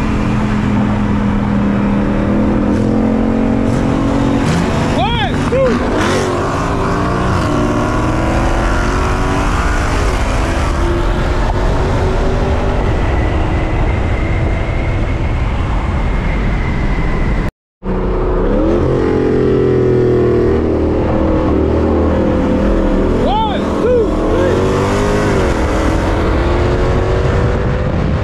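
Tyres hum on the road at speed.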